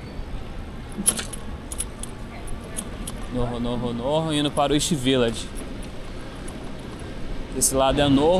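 A bicycle rolls along a paved street with light rattles.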